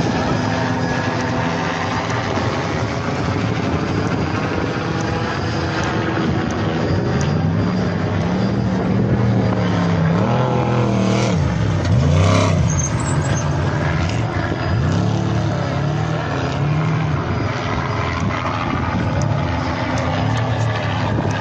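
A race truck engine roars and revs up and down.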